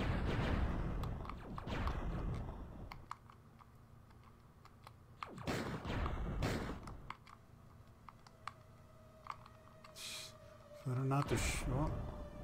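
Arcade game shots click and pop in quick succession.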